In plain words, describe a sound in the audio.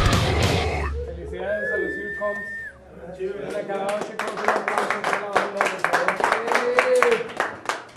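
A crowd of young people cheers and shouts.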